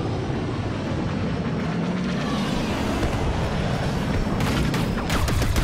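Explosions boom and debris crashes.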